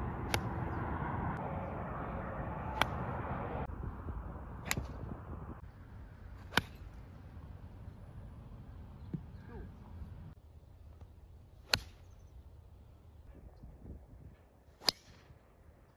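A golf club strikes a ball with a sharp crack, again and again.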